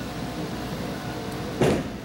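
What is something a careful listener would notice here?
A bowling ball thuds onto a wooden lane and starts rolling.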